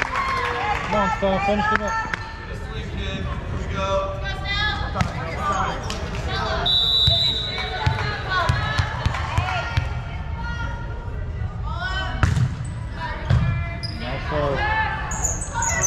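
A crowd of young women and girls cheers and shouts in a large echoing gym.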